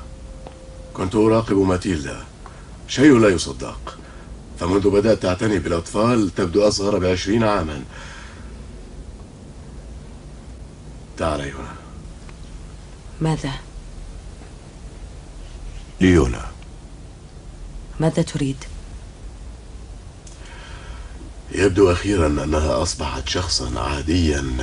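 A young woman speaks softly and earnestly nearby.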